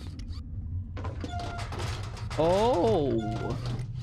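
A metal locker door creaks open.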